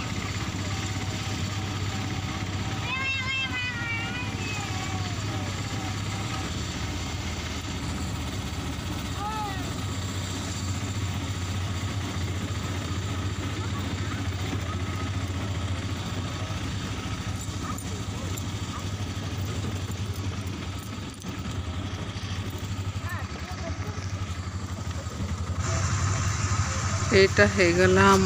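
An auto-rickshaw engine putters steadily as it drives along.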